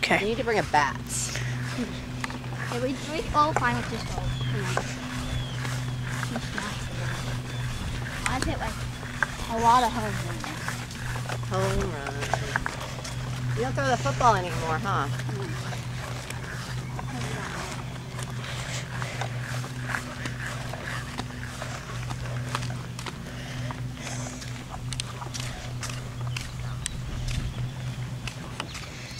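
Footsteps scuff on a paved path.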